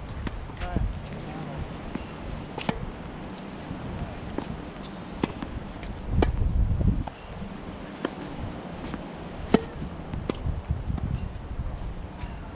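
Tennis balls thump off rackets in a rally outdoors.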